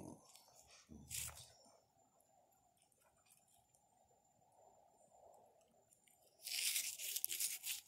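Fingers rub grit off a small stone.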